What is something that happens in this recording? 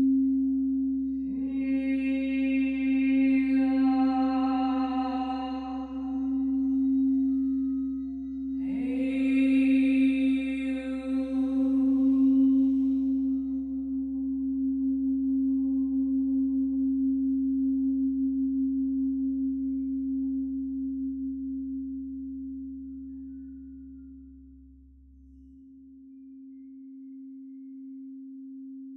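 A crystal singing bowl sings with a steady hum as a mallet circles its rim.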